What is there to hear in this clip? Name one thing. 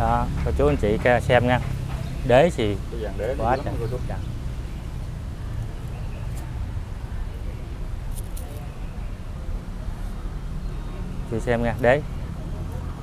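A man speaks calmly and close into a clip-on microphone, in short bursts.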